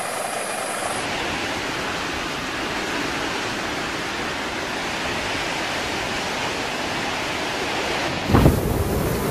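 A hovercraft engine roars steadily.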